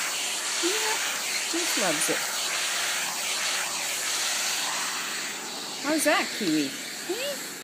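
A dog whines and yelps in high, bending cries.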